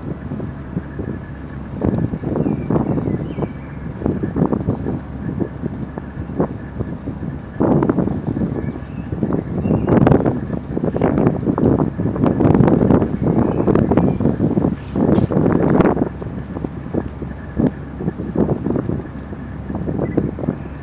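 A boat's engine hums steadily underneath.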